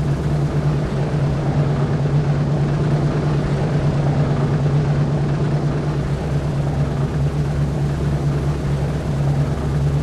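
Several propeller engines drone steadily at close range.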